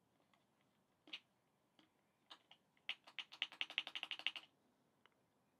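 A plastic button clicks several times.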